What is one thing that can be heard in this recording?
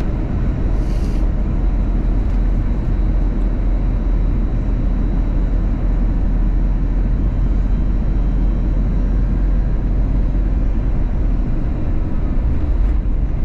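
A jet engine roars steadily, heard from inside an aircraft cabin.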